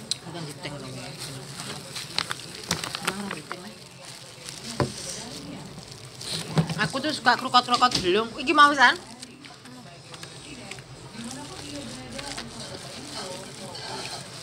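Paper and plastic wrapping rustle and crinkle.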